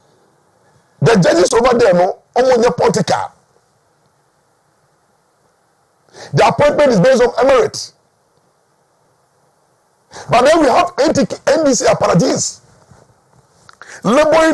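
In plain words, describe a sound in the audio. A middle-aged man speaks loudly and with animation into a microphone, in bursts with pauses.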